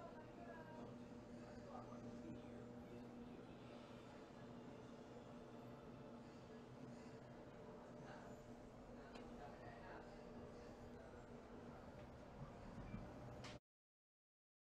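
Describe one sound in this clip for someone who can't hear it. A clothes dryer hums steadily.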